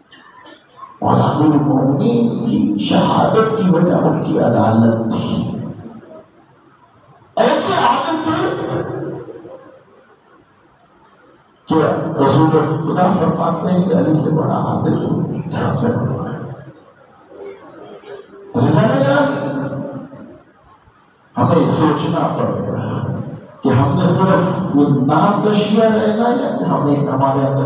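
A man preaches forcefully through a microphone and loudspeakers in an echoing hall, pausing between phrases.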